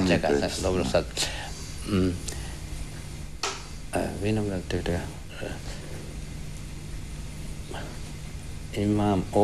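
An elderly man speaks calmly into a nearby microphone, in short phrases with pauses.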